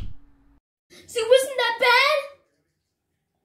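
A young boy speaks loudly close by.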